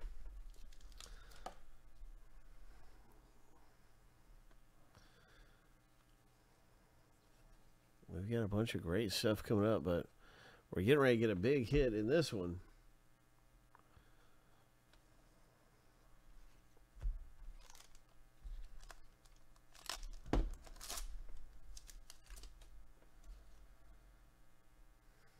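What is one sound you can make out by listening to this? Hands shuffle through trading cards with soft sliding sounds.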